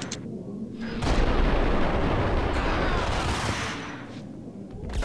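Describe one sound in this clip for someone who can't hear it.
Guns fire rapid loud shots that echo.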